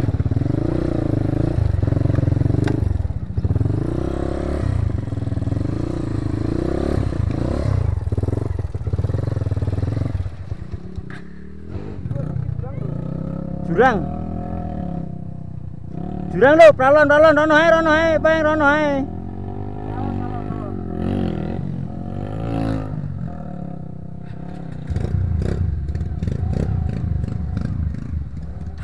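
A motorcycle engine revs and sputters up close.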